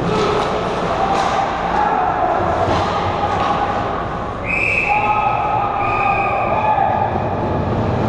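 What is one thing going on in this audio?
Ice skates scrape and carve across ice in a large echoing rink.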